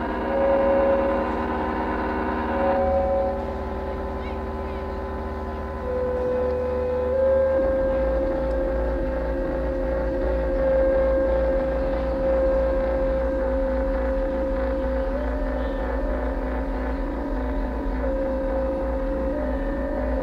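An electric guitar plays long, held notes.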